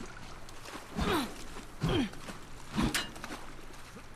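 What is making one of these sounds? A man talks casually into a headset microphone.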